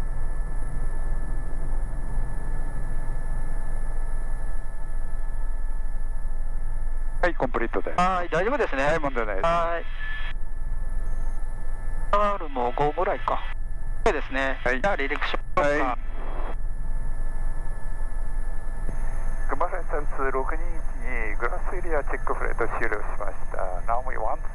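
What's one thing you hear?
A helicopter engine whines steadily with a deep rotor thrum close by.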